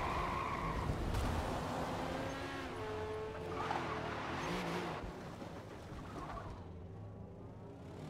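Gravel sprays and rattles under a sliding racing car.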